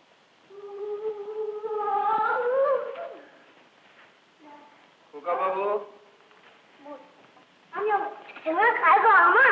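A man sings loudly in long, drawn-out phrases.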